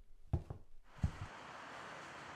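Footsteps thump softly on a padded cushion.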